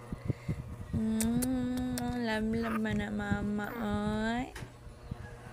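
A baby coos softly close by.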